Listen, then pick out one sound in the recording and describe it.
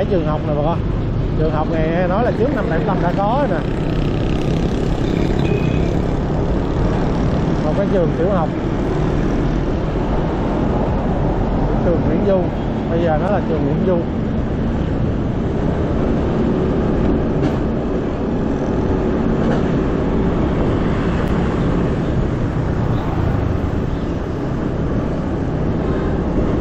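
Trucks and motorbikes rumble by in busy traffic.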